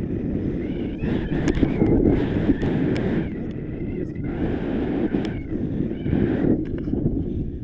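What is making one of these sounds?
A man speaks with excitement close by, partly drowned by the wind.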